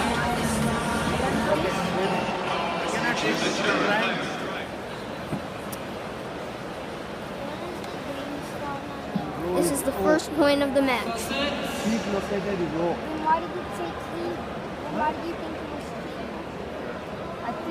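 A large crowd murmurs and chatters all around in a big open stadium.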